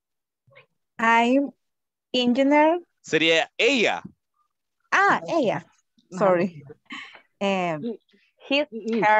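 A woman speaks clearly and steadily over an online call.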